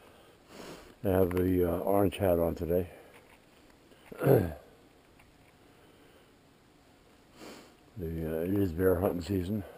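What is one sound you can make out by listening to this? A man speaks in short bursts, close by.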